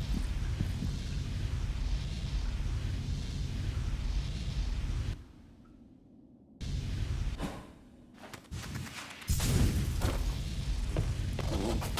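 A sharp whoosh sounds as a small figure dashes through the air.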